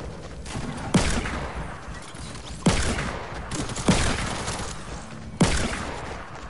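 A pistol fires several loud single shots.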